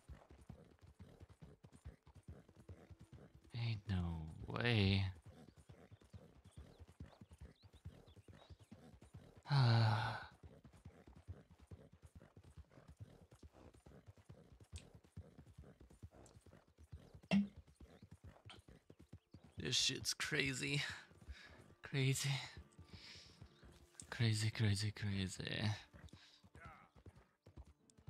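A horse gallops, hooves thudding on a dirt track.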